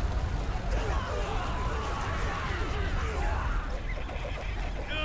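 A crowd of men cry out in alarm.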